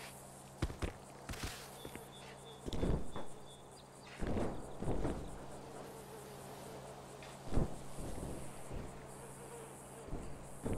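A helicopter's rotor hums and thumps steadily overhead.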